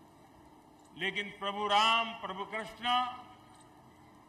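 An elderly man speaks into a microphone over loudspeakers, in an echoing open space.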